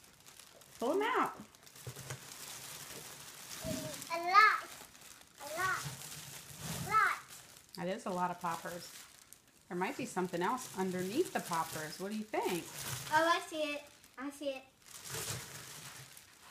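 Bubble wrap crinkles and rustles as a young girl pulls it out.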